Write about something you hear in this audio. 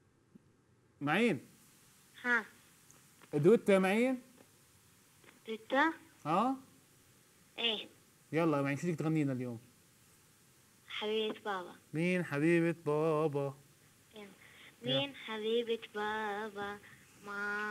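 A young man speaks calmly into a microphone, in short bursts with pauses.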